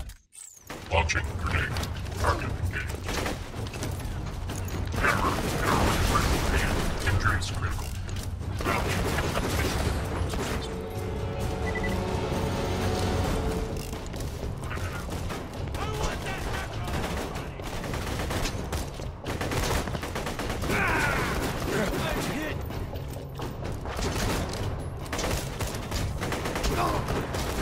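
Guns fire in rapid bursts with loud blasts.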